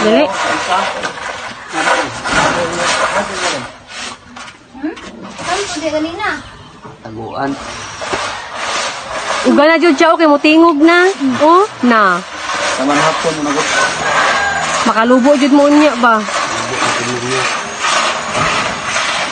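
A rake scrapes through dry grain in the distance.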